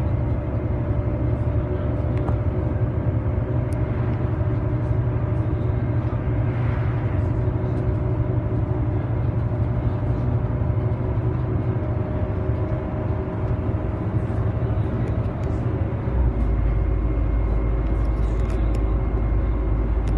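Loose fittings inside a bus rattle and click over the road.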